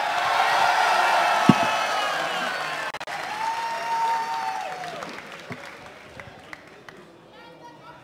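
A crowd cheers and applauds in a large hall, then fades.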